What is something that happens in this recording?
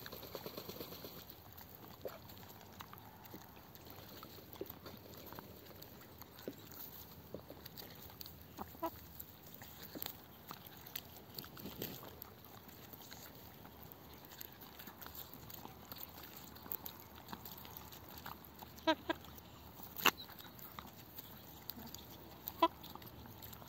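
Chickens peck at a tomato with quick soft taps.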